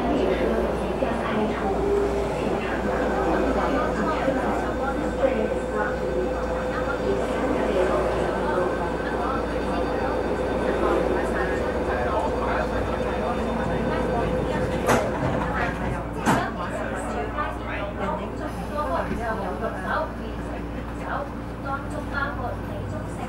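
A train's motor hums low and steadily while it stands at a platform.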